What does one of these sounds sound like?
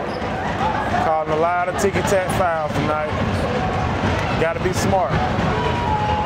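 Spectators shout and cheer loudly.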